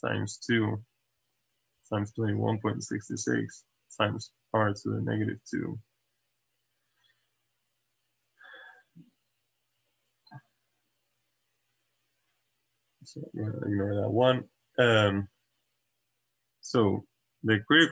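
A young man speaks calmly and explains, close to a microphone.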